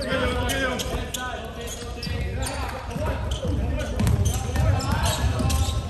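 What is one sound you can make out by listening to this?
Young men shout and call out to each other on the court.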